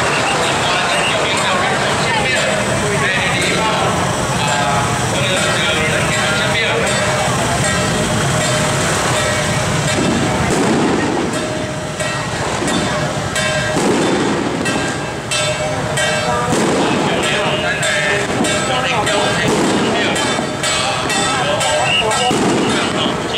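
A large crowd chatters and mills about outdoors.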